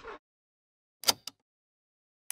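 A cassette clicks into a tape player.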